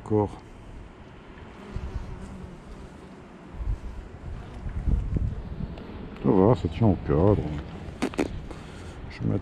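Bees buzz steadily around an open hive.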